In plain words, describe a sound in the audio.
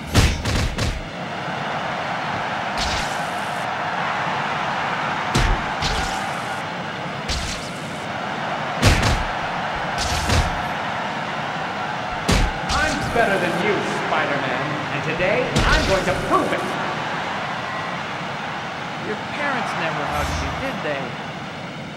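A crowd cheers and murmurs steadily.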